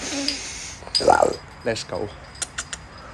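A young man lets out a short vocal sound close by.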